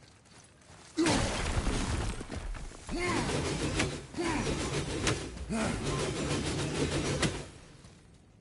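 Heavy blows and crashes ring out in a loud fight.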